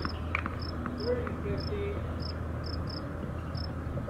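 A tennis ball bounces a few times on a hard court.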